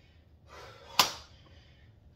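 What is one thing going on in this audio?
Dumbbells knock against the floor.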